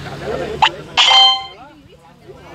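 A bright game chime rings out and fades.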